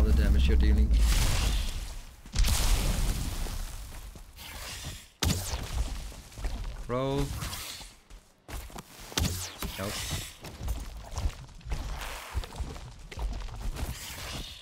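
Swords clash and strike with heavy impacts.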